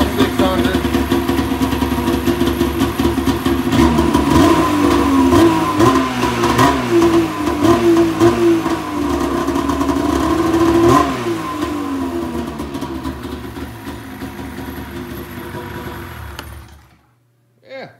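A snowmobile engine idles roughly close by, then cuts out.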